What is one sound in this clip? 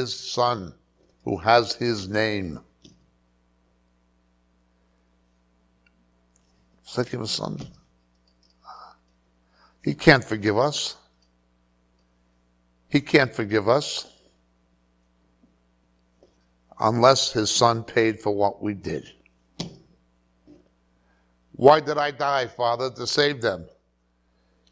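A middle-aged man speaks calmly into a microphone in short bursts, with long pauses between phrases.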